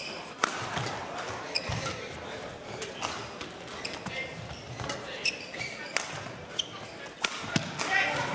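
Rackets smack a shuttlecock back and forth in a quick rally.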